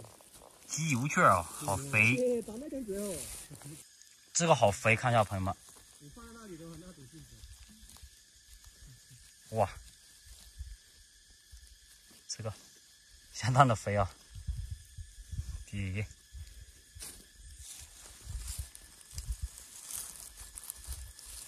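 Dry pine needles and soil rustle and crackle as a hand digs around mushrooms.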